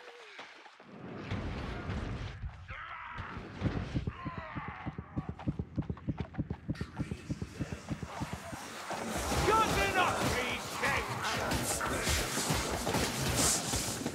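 Monsters snarl and growl close by.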